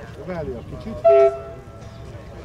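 A locomotive horn sounds a short blast.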